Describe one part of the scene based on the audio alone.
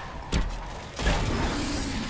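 A fiery explosion roars.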